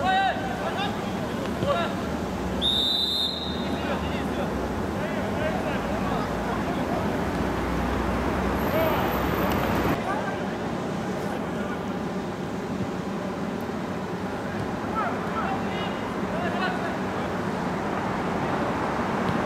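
Men shout and call out in the open air.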